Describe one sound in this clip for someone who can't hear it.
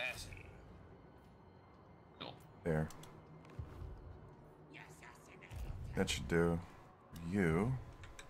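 A computer game's menu makes short clicks.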